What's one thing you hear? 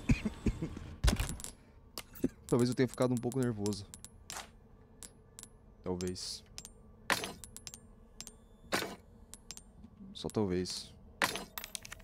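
Game menu clicks and chimes sound in quick short bursts.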